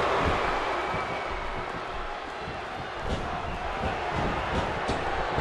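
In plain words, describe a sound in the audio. Bodies thud on a wrestling ring's canvas.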